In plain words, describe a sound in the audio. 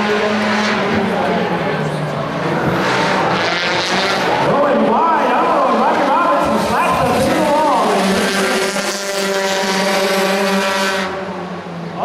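Race car engines roar and rev loudly nearby.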